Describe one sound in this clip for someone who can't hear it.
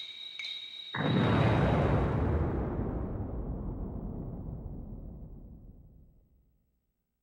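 A deep explosion rumbles and slowly fades away.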